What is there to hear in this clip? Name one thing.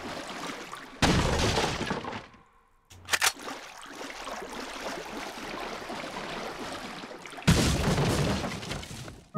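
A wooden barrel smashes apart.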